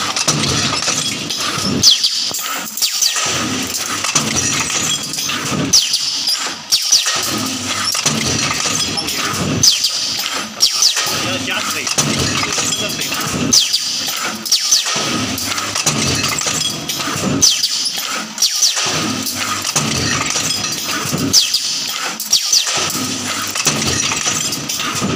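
Air hisses sharply from pneumatic valves.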